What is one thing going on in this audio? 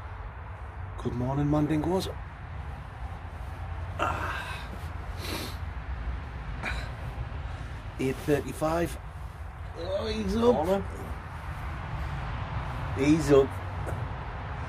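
A man talks close by, calmly and with animation.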